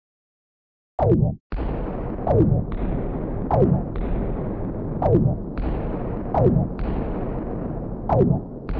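Explosions boom again and again in quick succession.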